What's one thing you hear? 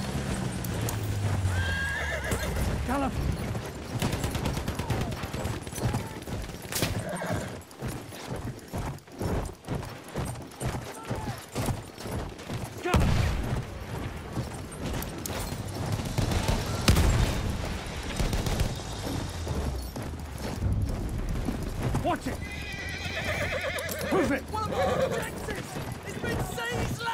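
A horse gallops, its hooves pounding in a quick rhythm.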